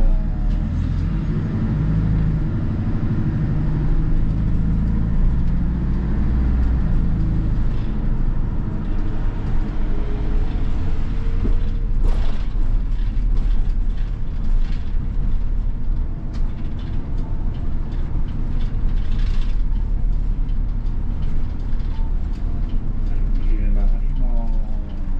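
A bus engine hums and drones steadily as the bus drives along.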